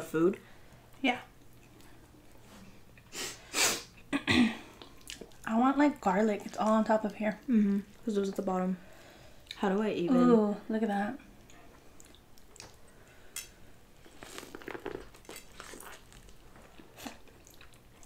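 A boy chews loudly with wet smacking sounds.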